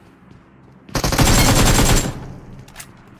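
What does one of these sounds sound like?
Gunfire rattles in a rapid burst.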